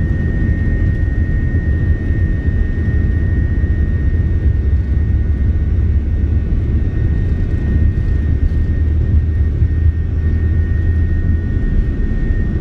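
Wheels rumble heavily on a runway.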